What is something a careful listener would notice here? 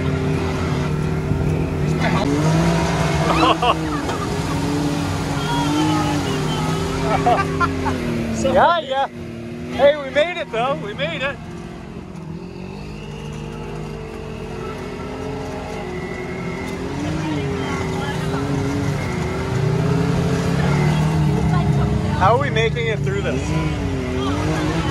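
An off-road vehicle's engine drones and revs steadily throughout.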